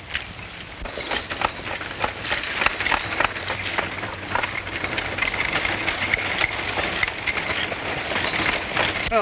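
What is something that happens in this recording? Horse hooves clop on a dirt road.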